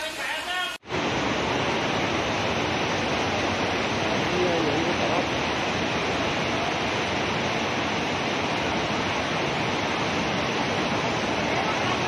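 Floodwater rushes steadily across a road.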